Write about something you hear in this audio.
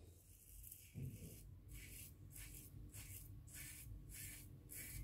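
A razor scrapes across stubble in short strokes.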